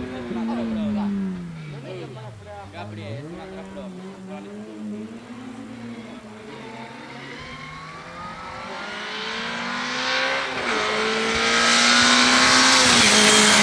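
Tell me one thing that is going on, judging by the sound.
A rally car engine revs hard and shifts gears as the car approaches, growing louder.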